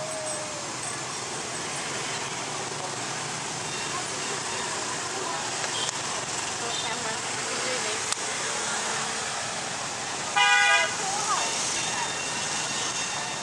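Motorbike engines hum and buzz steadily in busy street traffic.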